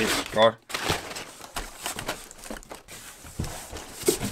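A cardboard box scrapes and thumps as it is lifted.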